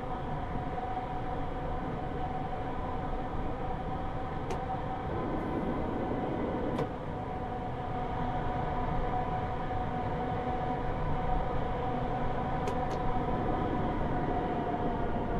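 A train's electric motor hums steadily as it rolls along the track.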